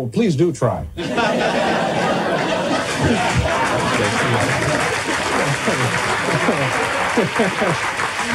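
A large audience laughs and cheers loudly.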